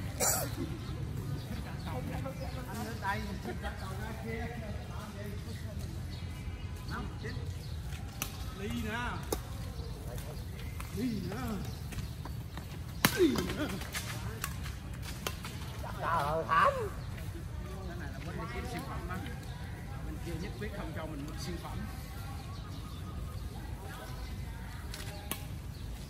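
Adults talk and call out casually outdoors.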